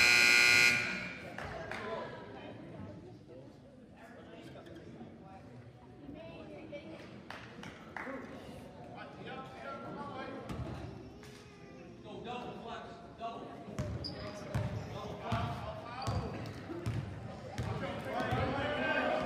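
Players and spectators talk and call out across an echoing gym.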